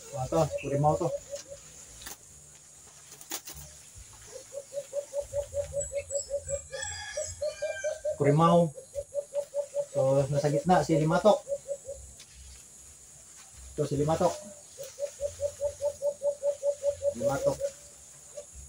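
Caged birds call with rapid, repeated notes close by.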